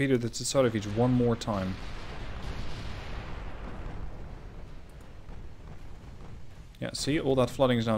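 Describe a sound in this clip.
Shells burst in heavy explosions on a warship.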